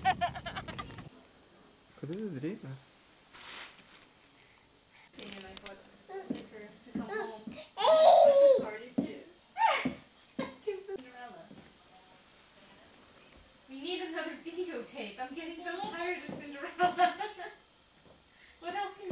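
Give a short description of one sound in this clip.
A small child babbles and squeals excitedly close by.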